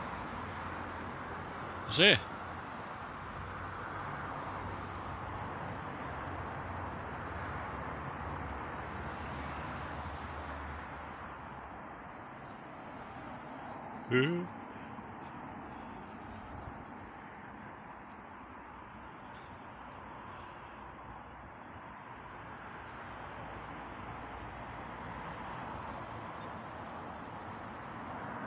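Leaves rustle softly in a light breeze outdoors.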